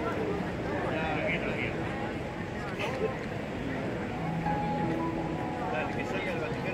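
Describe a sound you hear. A crowd of people talks in a busy open square.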